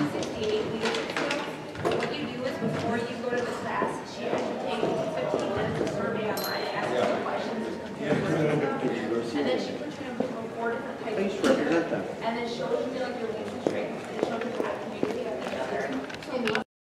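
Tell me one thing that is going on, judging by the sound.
Several adults talk over one another at a distance in a large echoing hall.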